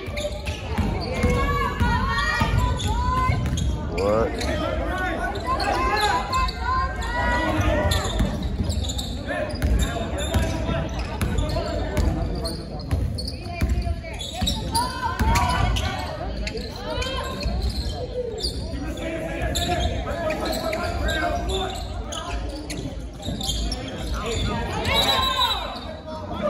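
Young men shout to each other during a basketball game in an echoing gym.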